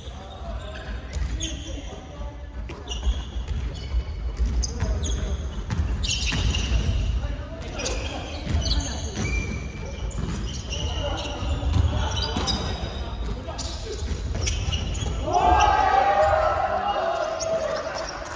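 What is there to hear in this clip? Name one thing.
Young people talk and call out at a distance, echoing around the hall.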